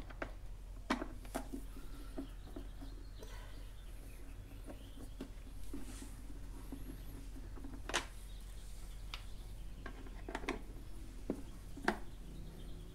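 Metal tools clink and tap against metal parts.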